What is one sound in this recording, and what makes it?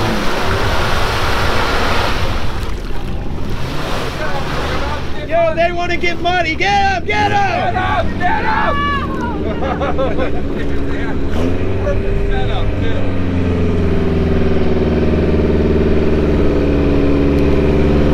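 A vehicle engine rumbles steadily nearby.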